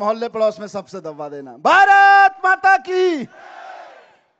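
A man shouts slogans through a loudspeaker.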